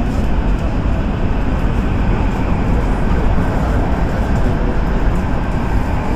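A train rumbles steadily.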